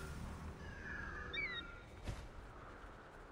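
An eagle screeches.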